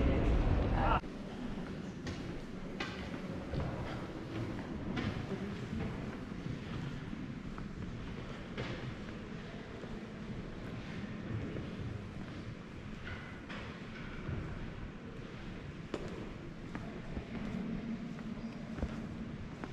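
Footsteps echo softly in a large, quiet hall.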